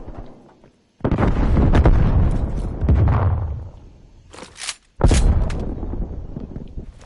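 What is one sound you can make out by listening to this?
A rifle fires rapid shots in bursts.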